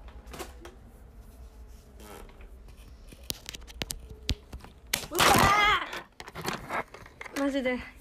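Hands fumble with a phone, making knocks and rustles.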